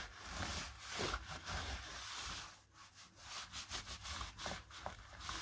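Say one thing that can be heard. A paper towel rubs and rustles across a laptop keyboard.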